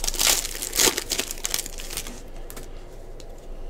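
A plastic wrapper crinkles and tears as it is ripped open.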